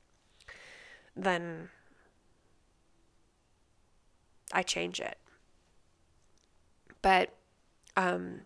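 A woman speaks calmly and closely into a microphone, in short phrases with pauses.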